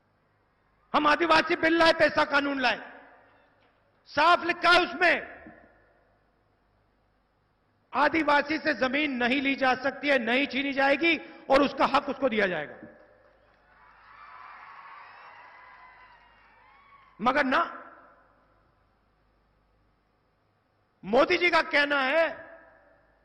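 A man speaks forcefully through loudspeakers, echoing in a large space.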